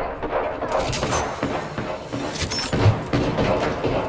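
A rapid burst of gunfire rings out.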